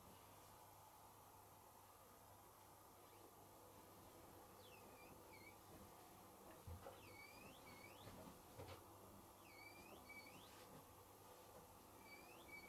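Several washing machines hum steadily as their drums turn.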